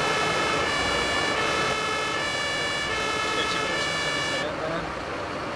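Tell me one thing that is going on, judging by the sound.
A fire engine siren wails in two alternating tones, then cuts off.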